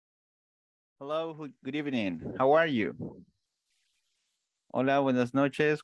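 A man speaks calmly through a headset microphone over an online call.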